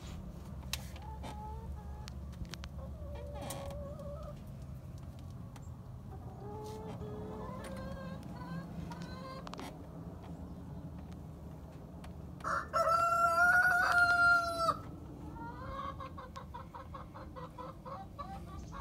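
Hens cluck softly close by.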